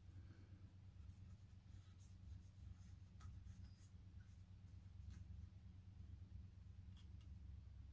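A cotton swab rubs softly against a small hard surface.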